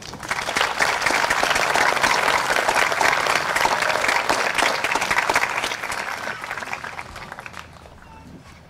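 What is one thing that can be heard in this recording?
An outdoor crowd applauds loudly, then the clapping fades.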